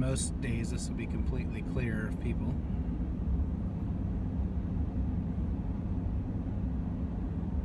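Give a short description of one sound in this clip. A car engine hums low and steady as the car rolls along.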